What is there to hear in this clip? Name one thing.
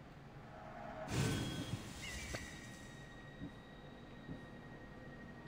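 A menu chime rings out and slowly fades.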